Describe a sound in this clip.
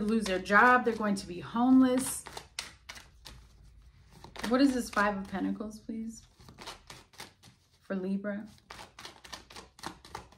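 Cards shuffle and flick in a woman's hands.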